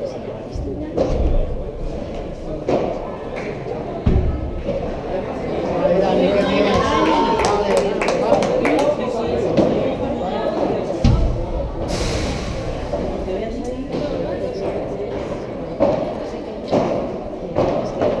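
Padel rackets strike a ball with sharp pops in a large echoing hall.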